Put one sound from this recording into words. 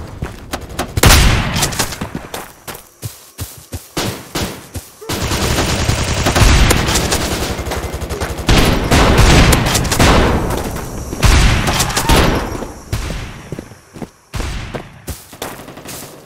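Loud rifle shots crack and boom, one at a time.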